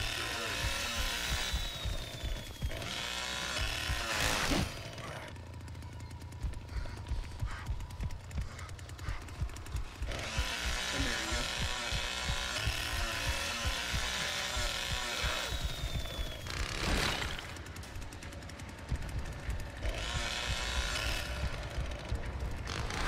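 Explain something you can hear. A chainsaw engine revs and roars loudly.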